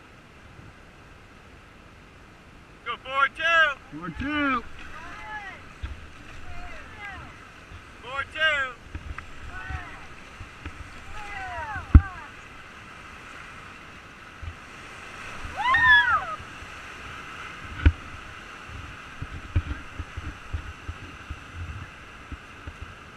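Whitewater rushes and churns loudly outdoors.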